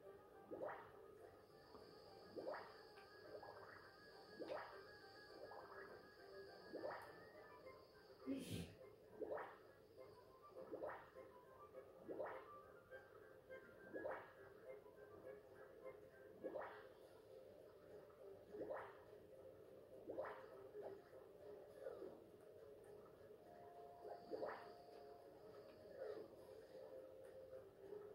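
Video game music plays from a television.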